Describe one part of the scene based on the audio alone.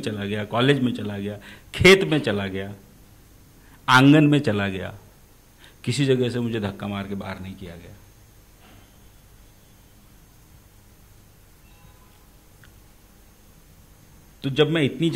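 A man speaks with animation into a nearby microphone, pausing between phrases.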